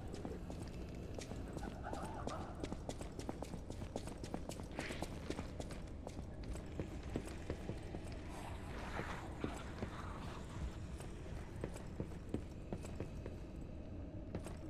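Footsteps tap quickly on a hard floor.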